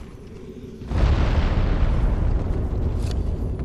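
A magic blast bursts with a loud roar.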